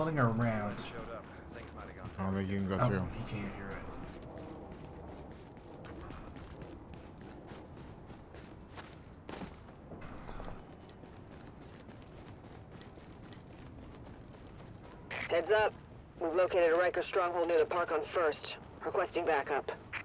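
Footsteps crunch through snow at a steady walking pace.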